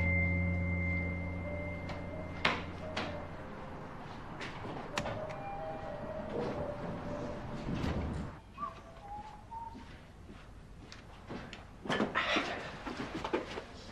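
Footsteps walk on a hard floor indoors.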